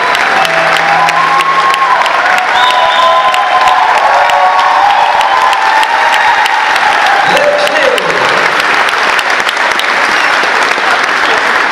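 A large crowd claps in a big echoing hall.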